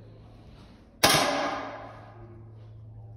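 An air rifle fires a single sharp shot that echoes briefly in a large hall.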